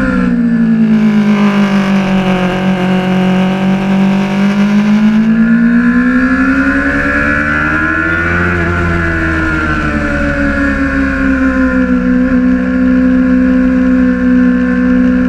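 A motorcycle engine roars close by, its pitch rising and falling as it revs.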